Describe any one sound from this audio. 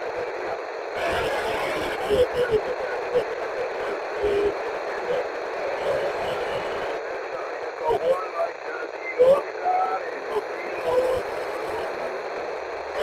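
Wind gusts outdoors and buffets the microphone.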